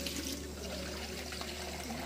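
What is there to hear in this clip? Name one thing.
Water runs from a tap into a plastic jug.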